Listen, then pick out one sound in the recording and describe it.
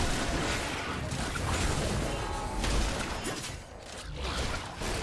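Magic blasts and weapon strikes clash in a fast video game battle.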